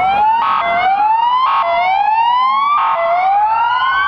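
A horn blares in short blasts.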